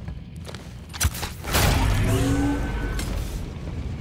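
A heavy metal door slides open with a loud rushing whoosh.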